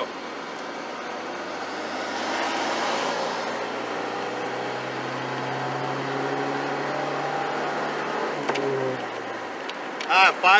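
A car engine roars and climbs in pitch as the car accelerates hard, then eases off.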